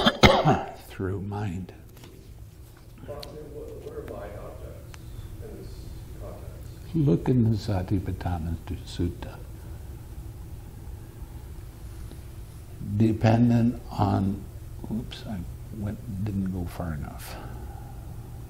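An elderly man speaks slowly and calmly into a headset microphone, with pauses.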